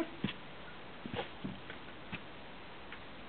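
Footsteps scuff on a stone doorstep.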